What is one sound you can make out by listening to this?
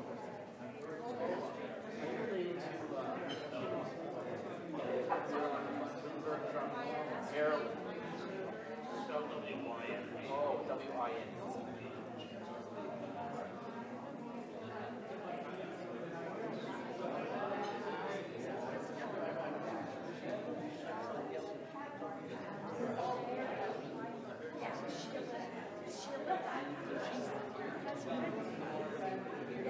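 A crowd of adults chatters all around in a room.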